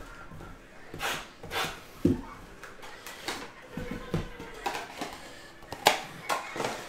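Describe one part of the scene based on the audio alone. Cardboard boxes knock and slide on a table.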